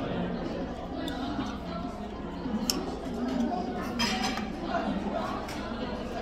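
A fork clinks and scrapes against a metal pan.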